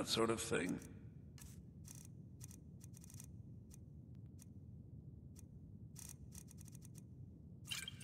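Menu clicks tick softly, again and again.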